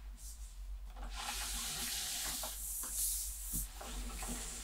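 A cardboard sleeve slides off a box with a close, rasping hiss.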